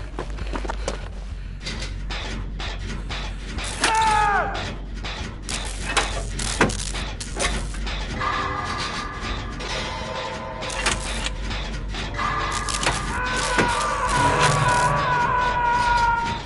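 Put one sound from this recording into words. Metal parts clank and rattle as a machine is repaired.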